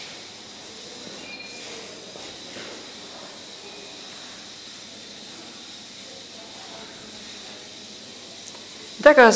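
A small robot's motors whir softly as it rolls across a hard floor.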